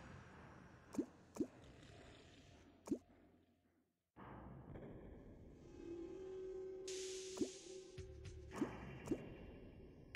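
Short, sharp game hit sounds land now and then.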